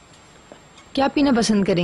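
A woman speaks with surprise close by.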